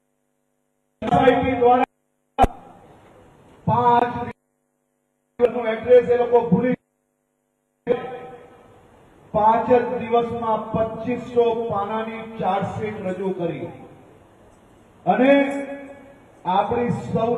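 A man speaks with animation into a microphone, heard through loudspeakers.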